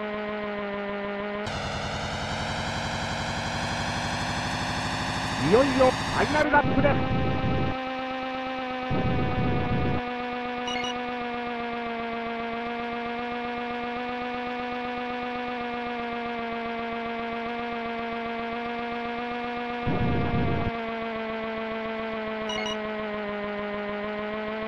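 A video game kart engine hums steadily.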